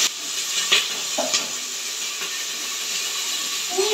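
A metal bowl clinks as vegetables are stirred.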